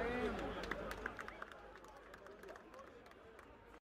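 Young men clap their hands.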